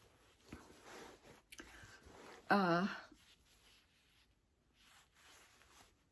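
Quilted fabric rustles as a bag is handled.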